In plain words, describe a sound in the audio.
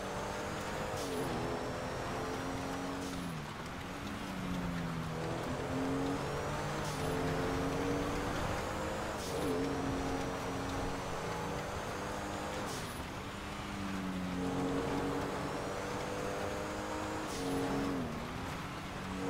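A sports car engine roars, revving up and dropping with each gear change.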